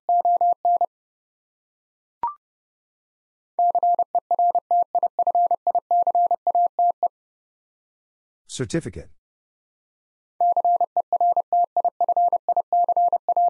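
A telegraph key taps out quick bursts of steady Morse code beeps.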